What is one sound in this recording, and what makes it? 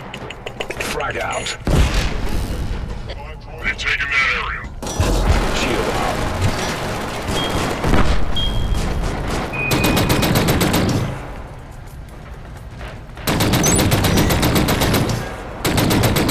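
Gunfire bursts out in rapid volleys.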